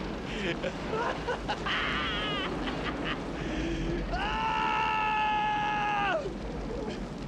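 A man screams in agony close by.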